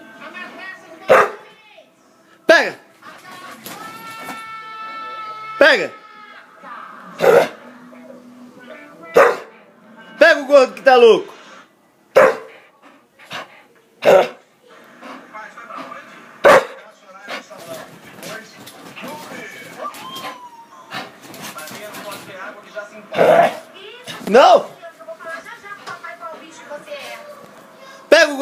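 A dog barks loudly and sharply, close by.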